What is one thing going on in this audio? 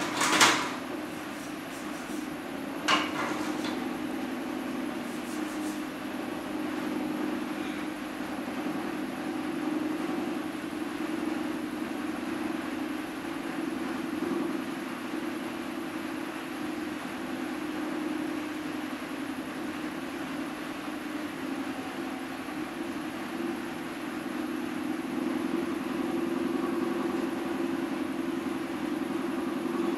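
A potter's wheel hums steadily as it spins.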